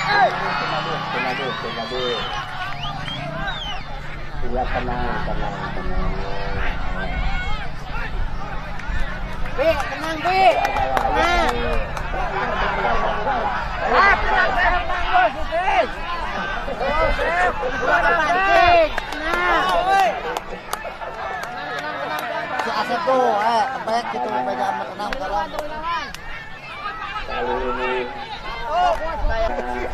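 A large outdoor crowd shouts and chatters loudly.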